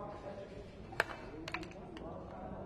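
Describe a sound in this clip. Dice clatter onto a wooden board.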